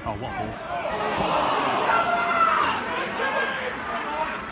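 A crowd of spectators cheers and shouts.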